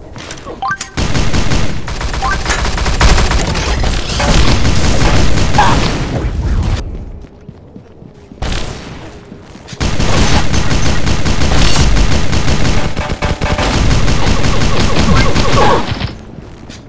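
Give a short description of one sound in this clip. Rapid-fire video game guns shoot in long bursts.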